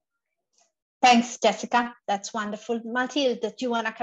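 A middle-aged woman speaks thoughtfully over an online call.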